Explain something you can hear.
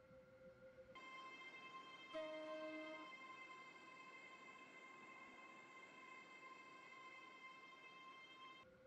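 A train's electric motor hums and whines as the train pulls away.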